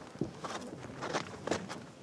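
A person walks barefoot across a rug.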